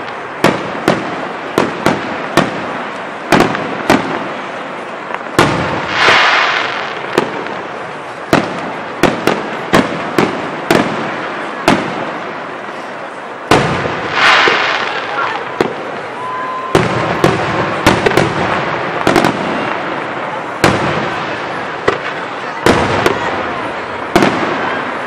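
Fireworks burst with loud, sharp booms, echoing across the night.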